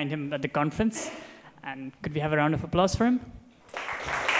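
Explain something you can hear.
A man speaks through a microphone to an audience.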